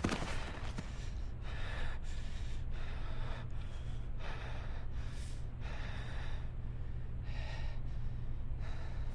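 A man speaks quietly and calmly, close by.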